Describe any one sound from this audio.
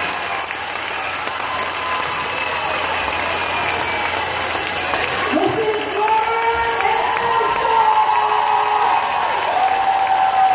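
A large crowd of children and adults cheers and screams loudly in an echoing hall.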